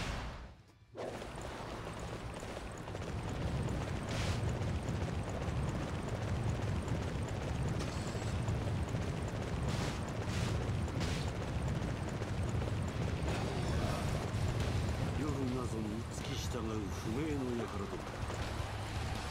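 A horse gallops with heavy hoofbeats.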